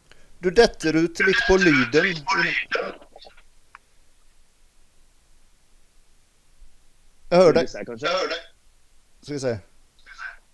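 A young man speaks calmly through an online call.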